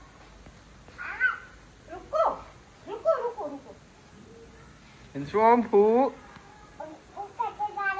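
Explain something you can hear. A toddler babbles.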